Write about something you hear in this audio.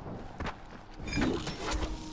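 A body lands with a heavy thud.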